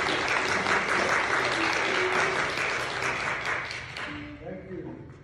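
A string band plays fast.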